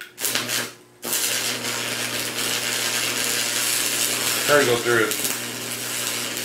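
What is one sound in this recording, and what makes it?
An electric arc welder buzzes and sizzles loudly.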